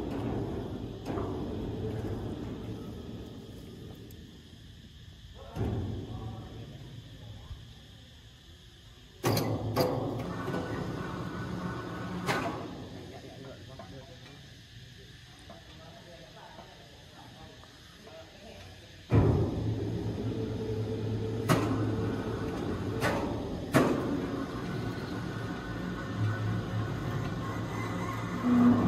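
A crane's engine rumbles steadily.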